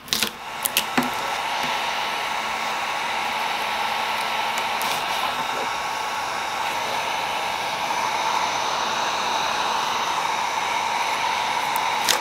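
A heat gun blows with a steady, whirring hiss.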